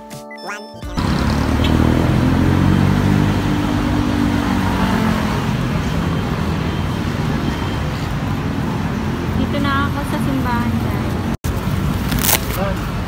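Traffic roars steadily along a road outdoors.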